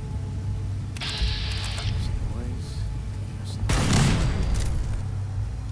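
Gunfire bursts loudly in short volleys.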